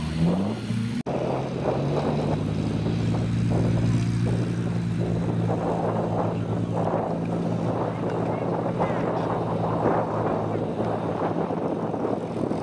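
A car engine roars as the car drives across a bumpy field.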